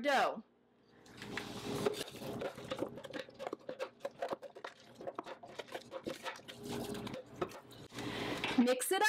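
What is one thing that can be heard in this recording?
A wooden spoon scrapes and stirs a thick mixture in a metal bowl.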